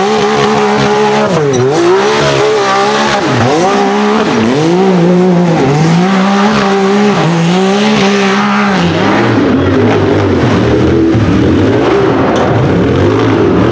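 An engine revs hard in bursts, rising and falling.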